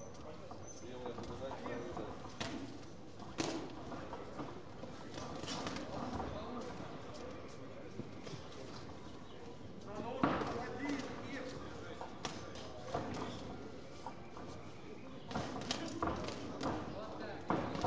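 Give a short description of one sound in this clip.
Boxers' shoes scuff and shuffle on canvas.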